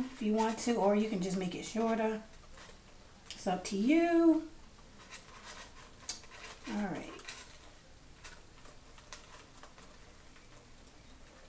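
Hands crinkle a foil ribbon.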